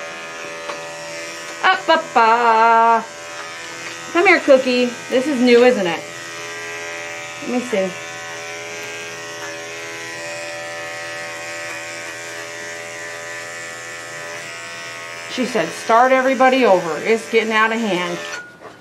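Electric hair clippers buzz steadily.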